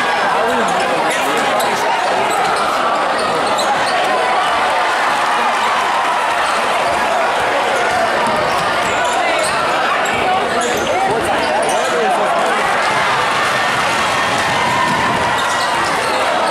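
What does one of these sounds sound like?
A large crowd cheers and chatters loudly in an echoing gym.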